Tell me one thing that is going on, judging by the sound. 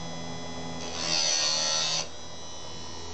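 A grinding wheel briefly grinds against a metal chain with a harsh hiss.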